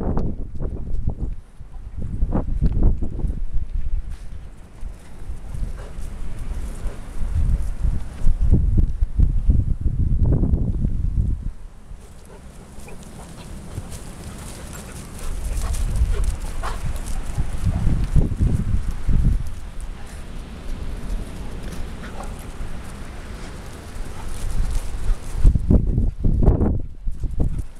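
Large dogs' paws thud and patter on grass as they run.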